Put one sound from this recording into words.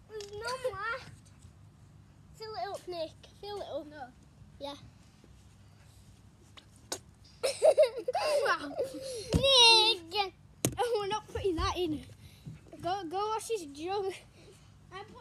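A young boy talks and laughs with animation close by.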